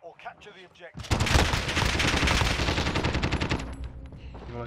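Automatic gunfire rattles rapidly.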